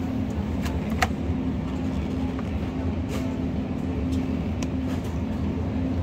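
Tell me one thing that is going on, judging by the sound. A plastic package crinkles in a hand.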